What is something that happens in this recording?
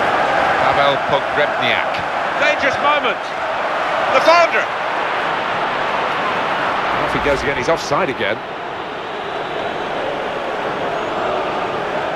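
A large crowd roars steadily in a big stadium.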